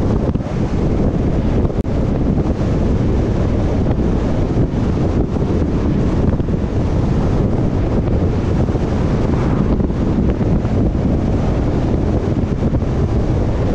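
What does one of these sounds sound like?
Wind rushes and buffets loudly over a moving vehicle.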